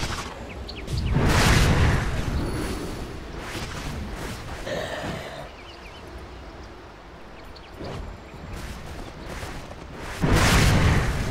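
Magic spells whoosh and crash in short bursts.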